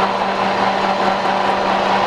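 Pellets pour and rattle into a metal hopper.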